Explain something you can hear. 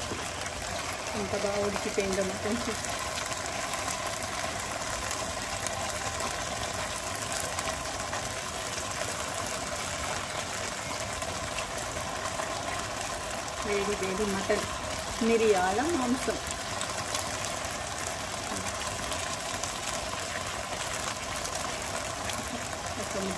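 A pot simmers and hisses softly.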